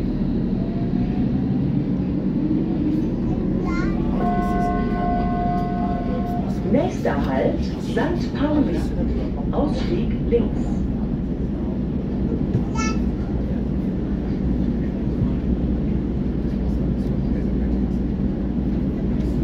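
A train rumbles and roars steadily along the tracks.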